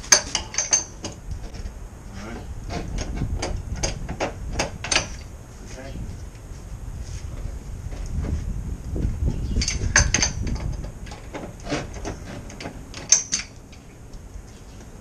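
A man talks quietly up close.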